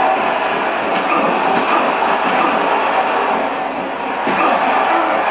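Punches and body slams thud.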